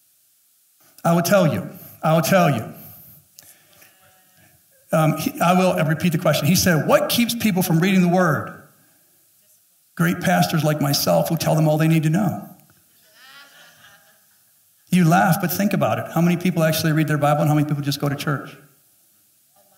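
A man speaks with animation through a headset microphone, in bursts with pauses.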